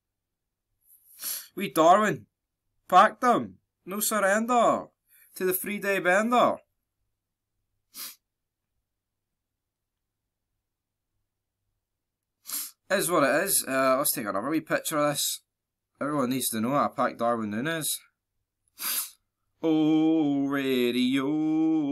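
A young man talks calmly and close to a microphone, in bursts with pauses.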